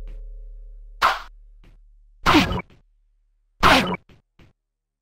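A heavy club swishes through the air in short, sharp bursts.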